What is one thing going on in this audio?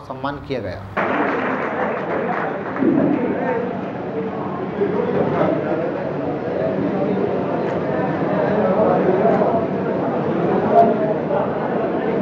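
A crowd murmurs and chatters in a hall.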